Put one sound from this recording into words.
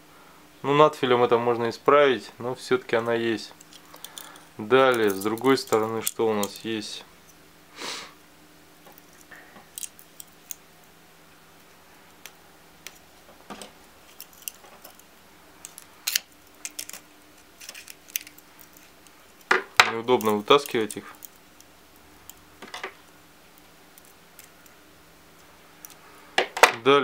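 A metal multi-tool clicks and clacks as its parts fold open and shut.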